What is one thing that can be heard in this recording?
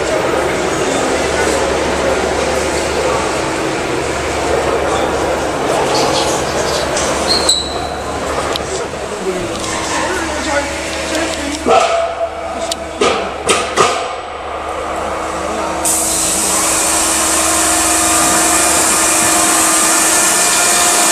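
A machine hums steadily in a large echoing hall.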